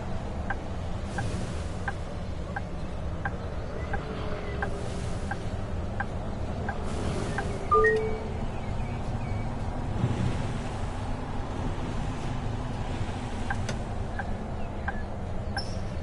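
A bus engine hums low and steady while driving.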